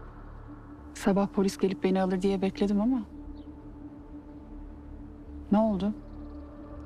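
A young woman speaks calmly and softly.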